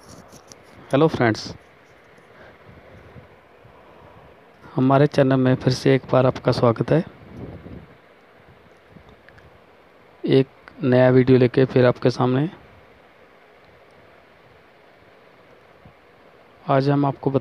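A man speaks calmly close by, in short bursts.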